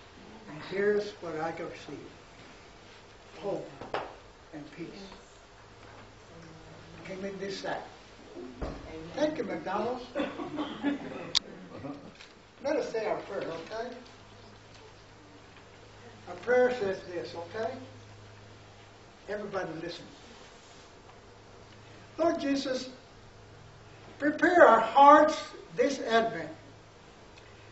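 An elderly man speaks calmly in bursts, with pauses.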